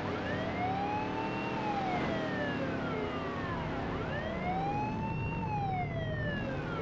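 A police siren wails, slowly rising and falling.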